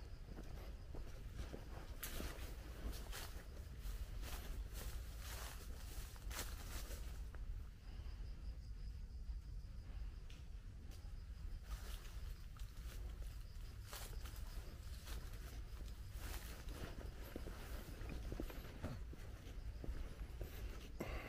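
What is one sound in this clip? Wind blows outdoors and rustles tree leaves.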